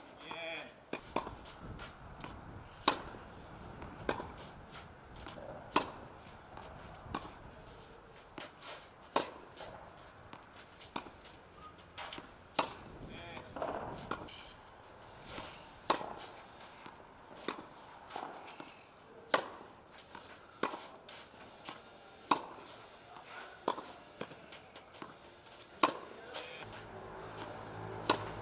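A tennis racket strikes a ball with sharp pops at a steady rhythm.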